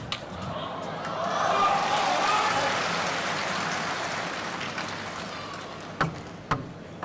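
A crowd cheers and applauds in a large hall.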